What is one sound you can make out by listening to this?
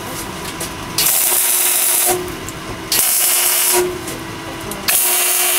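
A welder crackles and hisses in short bursts.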